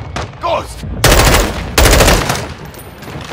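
A rifle fires rapid bursts of shots, echoing in a large hall.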